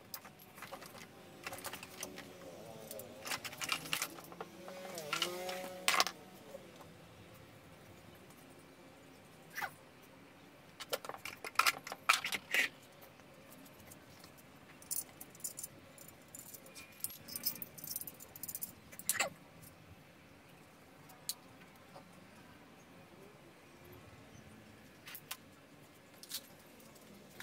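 Metal parts clank and knock against each other.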